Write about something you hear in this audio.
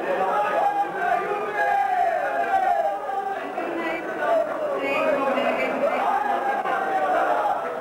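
A group of men sings together.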